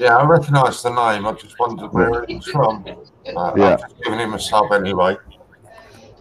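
A middle-aged man speaks with animation over an online call.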